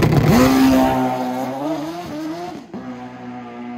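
A motorcycle engine fades into the distance.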